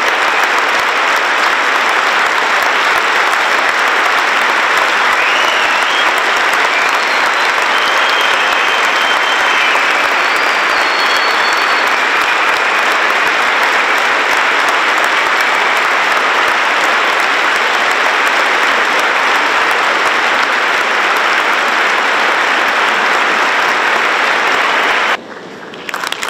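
A large audience applauds steadily in a big hall.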